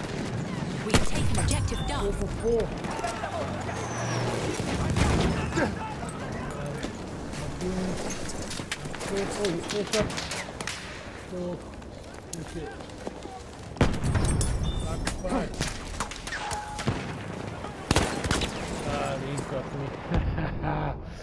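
Gunshots crack sharply, one at a time.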